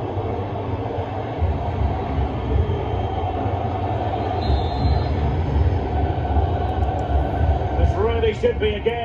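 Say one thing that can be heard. A stadium crowd roars through a small handheld console speaker.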